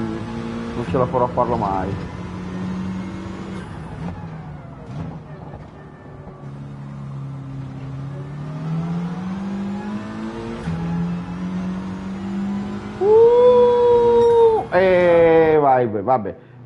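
A racing car engine drones and revs up and down.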